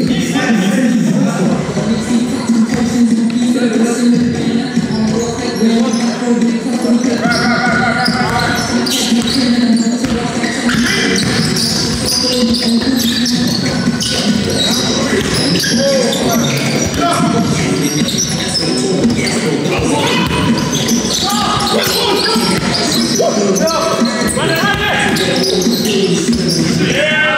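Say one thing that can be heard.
Young men shout and call out to each other during play.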